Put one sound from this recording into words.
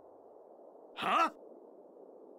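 A man grunts sharply at close range.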